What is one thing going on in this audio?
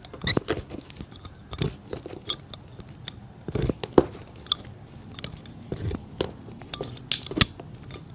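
A metal tool clinks and taps against a shoe.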